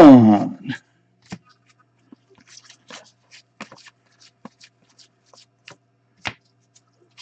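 Trading cards rustle and flick as hands sort through them.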